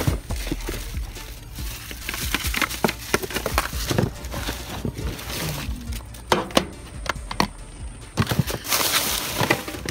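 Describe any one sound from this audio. Plastic bags and paper rustle and crinkle as a hand rummages through trash.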